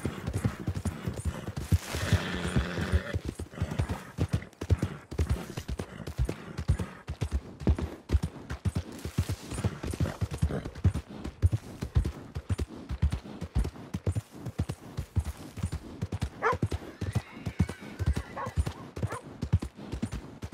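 Horse hooves thud quickly on a dirt path.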